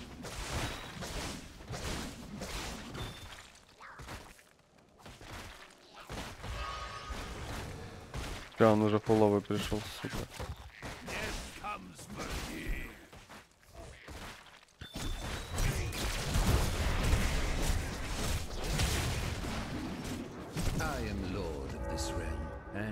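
Weapons clash and magic blasts crackle in a fast, busy fight.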